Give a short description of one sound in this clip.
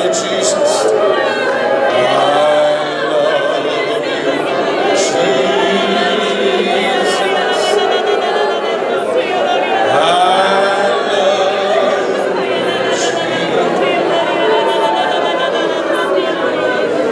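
A woman sings with feeling in a large echoing hall.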